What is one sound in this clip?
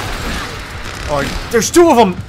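A young man speaks close to a microphone with animation.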